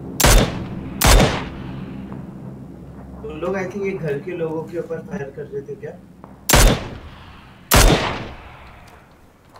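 A rifle fires loud single shots that echo away.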